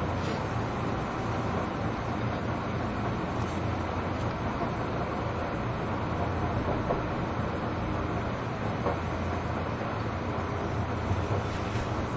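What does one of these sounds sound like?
A train hums steadily while standing nearby.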